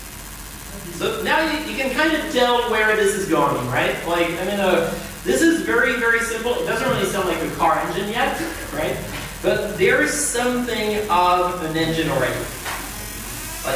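A man speaks calmly to a small audience in a room that echoes a little.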